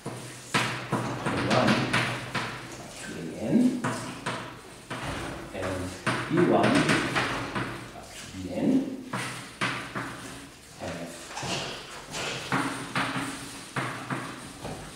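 A man speaks steadily in an echoing room, as if lecturing.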